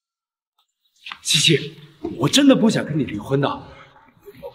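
A young man speaks earnestly and pleadingly, close by.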